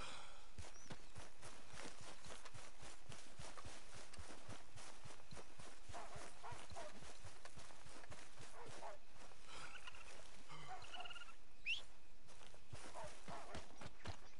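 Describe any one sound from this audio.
Footsteps run quickly through tall dry grass.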